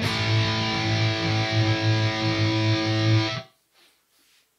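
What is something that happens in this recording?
An electric guitar plays a chord that rings out and then stops.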